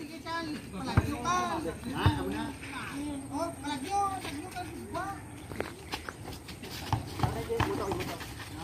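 A basketball bounces on hard dirt.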